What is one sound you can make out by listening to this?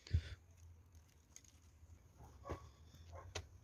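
Dry twigs scrape and clatter onto a concrete surface.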